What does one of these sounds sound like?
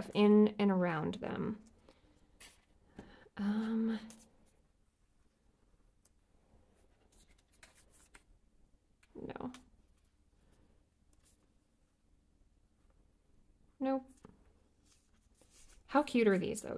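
Paper rustles softly under fingers.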